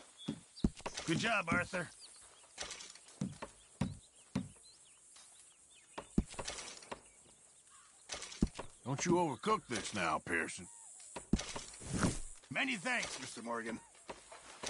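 A middle-aged man speaks in a deep, calm voice close by.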